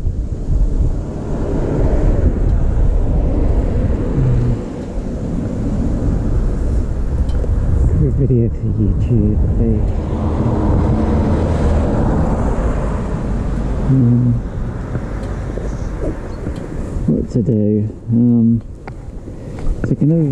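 A motorcycle engine idles with a low, steady rumble nearby.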